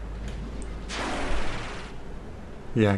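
A sharp burst of energy hisses loudly for about a second.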